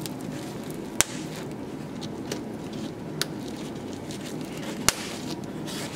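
A plastic buckle clicks into place.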